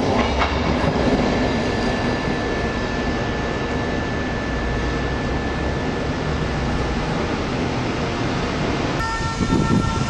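A train approaches in the distance with a steady, rising hum.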